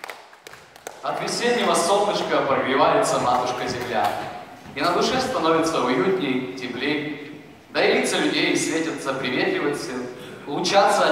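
A man speaks into a microphone, heard through loudspeakers in an echoing hall.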